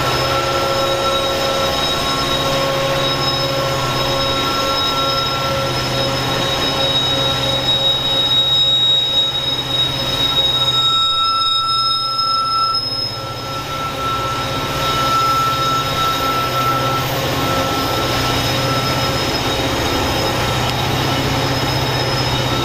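A train horn blows loudly in long blasts.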